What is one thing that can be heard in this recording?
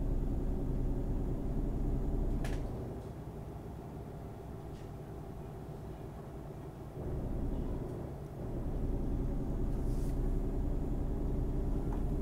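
A truck engine hums low and steady, rising and falling as it drives.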